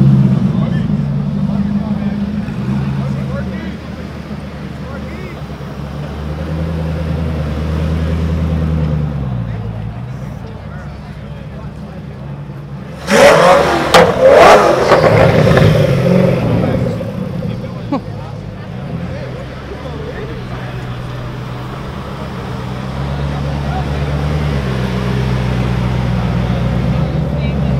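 A sports car engine idles with a deep, burbling rumble close by.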